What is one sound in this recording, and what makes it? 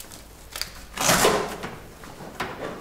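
Letters drop into a bag with a rustling thump.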